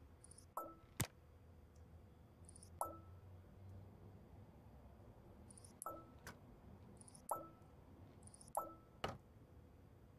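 Cables click into place with sharp snaps.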